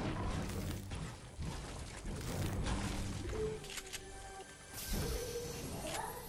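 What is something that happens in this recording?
A pickaxe strikes a wall.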